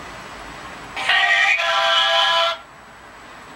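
A phone game plays a short bright startup jingle through a small speaker.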